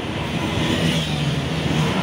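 A motorbike engine passes by.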